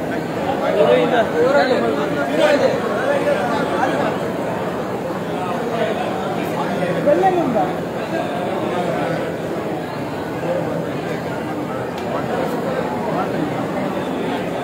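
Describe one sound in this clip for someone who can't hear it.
A crowd of men and women chatter loudly all around, close by.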